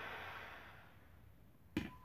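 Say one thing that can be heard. A propane torch hisses and cuts off.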